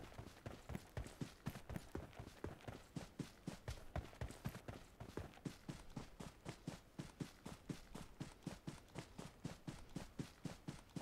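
Quick footsteps run steadily over grass.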